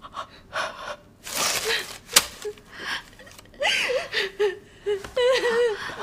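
A young woman wails and sobs loudly.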